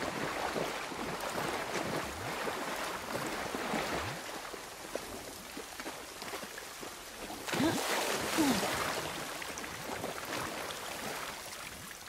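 Footsteps swish and rustle through tall wet grass.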